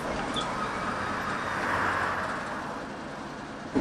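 Bus doors open with a pneumatic hiss.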